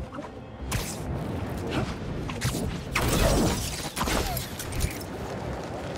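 Web lines snap and whoosh in quick bursts.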